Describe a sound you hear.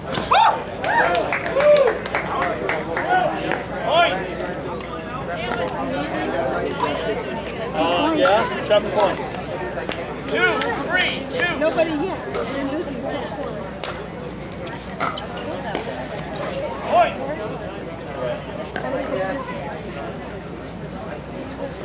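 Men talk and call out outdoors, a short distance away.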